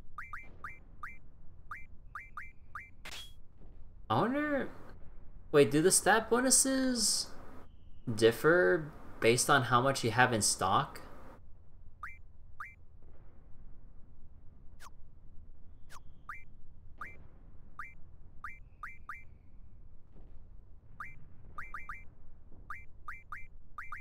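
Short electronic menu beeps blip again and again.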